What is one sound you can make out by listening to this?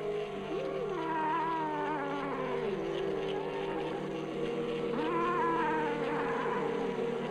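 A cat yowls loudly.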